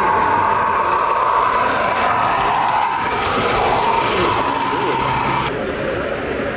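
A model train whirs along its track with a steady electric hum.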